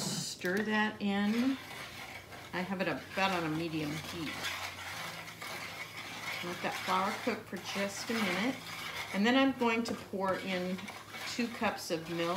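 A wooden spoon scrapes and stirs in a pan.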